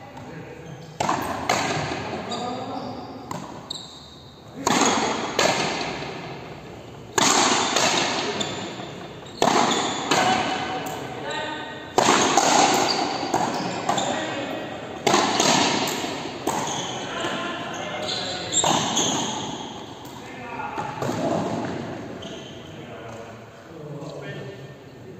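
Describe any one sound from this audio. Rackets strike a small rubber ball, each hit booming through a large echoing indoor court.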